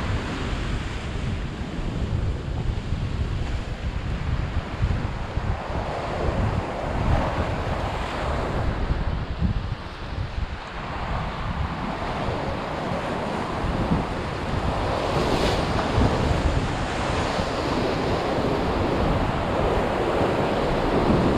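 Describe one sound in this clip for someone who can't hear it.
Waves crash and surge against rocks close by.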